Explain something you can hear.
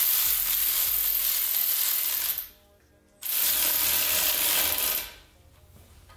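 A power tool whirs in two long bursts.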